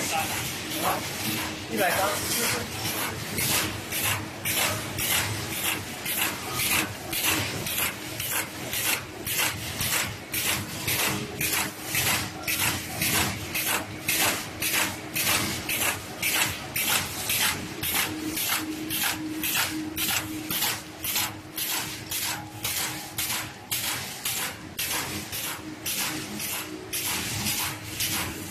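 A machine runs with a fast, steady rhythmic clatter.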